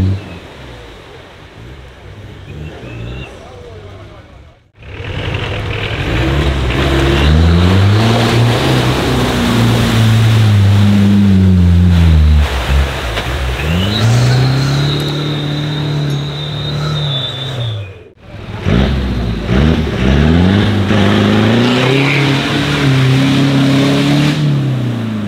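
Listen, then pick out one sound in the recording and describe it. An off-road engine revs hard, rising and falling in pitch.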